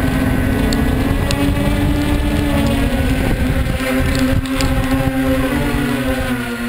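A small electric motor whines steadily close by.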